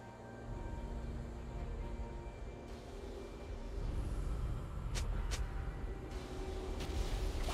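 Video game combat effects clash and whoosh.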